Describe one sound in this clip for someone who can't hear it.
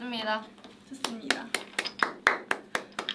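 Two young women clap their hands rapidly.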